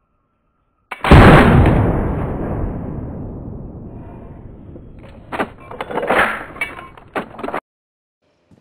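A rifle fires a single loud shot that echoes and slowly fades.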